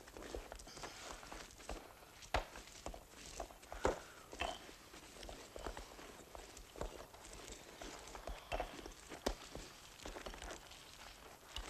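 Clothing rustles as people shift about close by.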